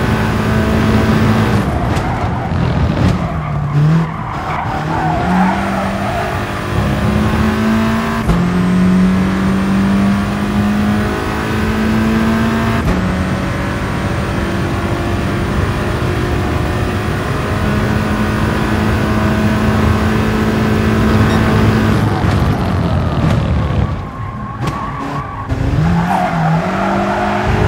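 A racing car engine roars loudly, rising in pitch through the gears and dropping as it brakes for corners.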